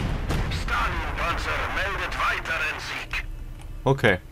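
Explosions boom in a distant battle.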